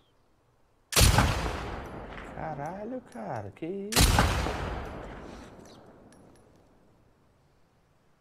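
Rifle shots ring out loudly, with echoes trailing off.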